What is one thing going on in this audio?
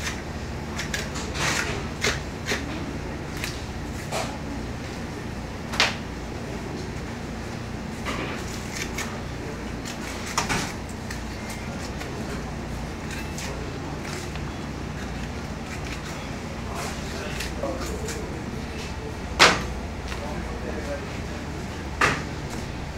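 Meat thuds softly against a hard table.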